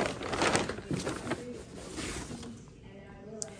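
Paper crinkles and rustles as a hand rummages in a paper bag.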